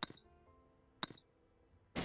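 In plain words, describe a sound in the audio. A crowbar smashes a wooden crate.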